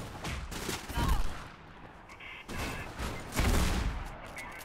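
A shotgun fires loud, booming blasts.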